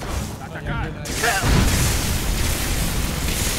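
An electric spell crackles and buzzes loudly.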